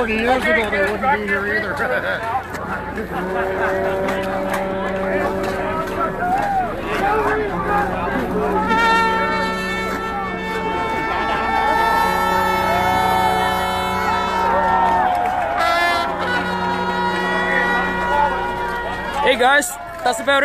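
Music with singing plays loudly from a loudspeaker.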